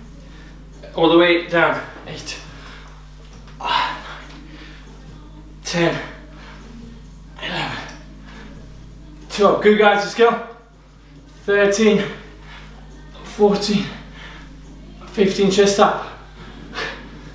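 A young man speaks in short, strained phrases close by.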